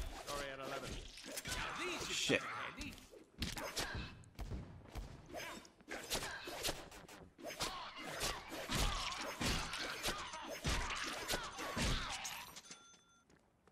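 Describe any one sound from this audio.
Swords slash and clang rapidly in a hectic fight.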